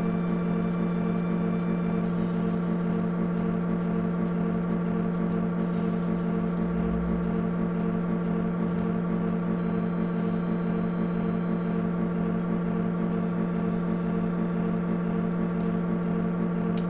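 Calm game music plays steadily.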